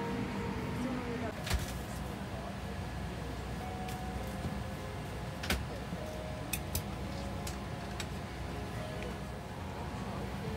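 An aircraft cabin hums steadily with a low engine drone.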